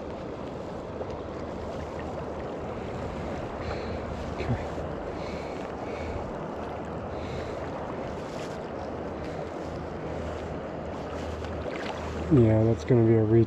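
A river flows and burbles steadily nearby.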